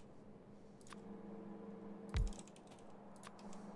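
A soft click sounds as a menu opens.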